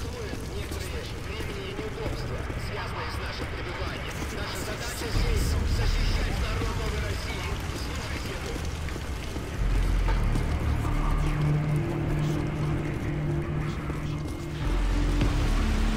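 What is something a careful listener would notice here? Footsteps hurry along a hard floor.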